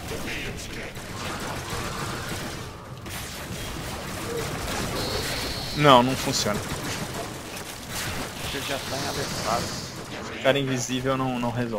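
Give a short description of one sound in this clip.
Game weapons swing and clash.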